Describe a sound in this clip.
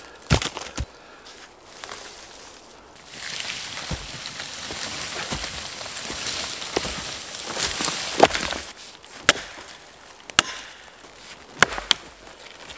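An axe chops into birch wood with sharp thuds.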